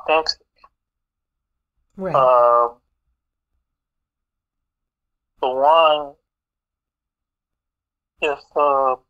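A man speaks with animation close by, in short drawn-out bursts with pauses between.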